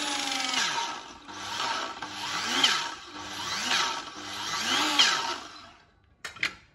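An electric saw motor revs in short bursts.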